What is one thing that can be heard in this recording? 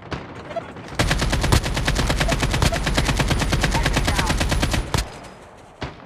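An automatic rifle fires in a video game.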